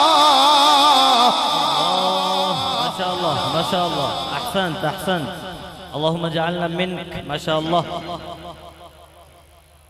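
A young man chants loudly through a microphone, his voice wavering in long melodic lines.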